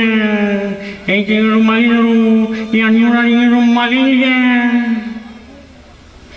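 A young man sings a sustained, wavering melody through a microphone.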